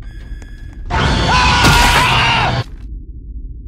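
A knife strikes with a sudden loud burst of noise.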